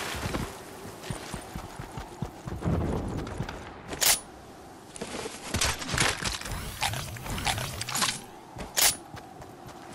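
Footsteps thud and rustle through grass.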